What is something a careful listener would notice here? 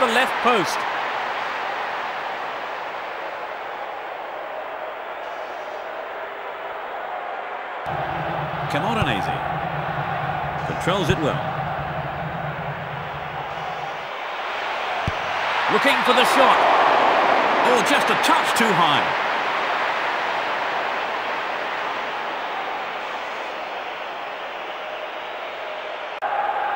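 A large crowd roars steadily in a stadium, swelling louder for a moment.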